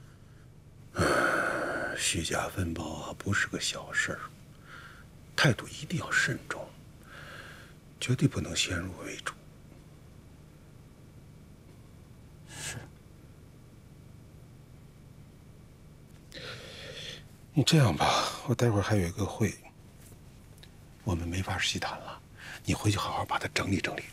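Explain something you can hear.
A middle-aged man speaks calmly and seriously, close by.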